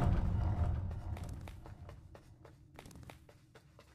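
Soft footsteps tap steadily.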